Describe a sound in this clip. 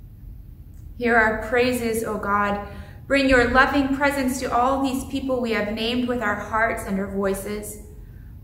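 A middle-aged woman sings slowly and softly in a reverberant room.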